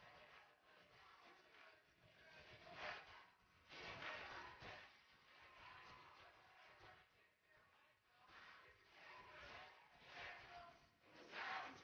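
Several women sing loudly through microphones.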